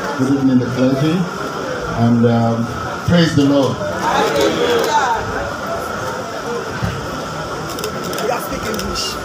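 A man speaks animatedly into a microphone.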